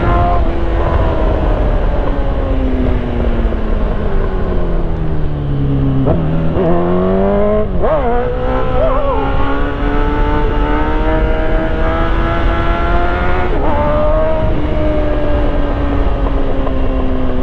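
A motorcycle engine roars, its pitch falling as it slows and rising sharply as it revs up through the gears.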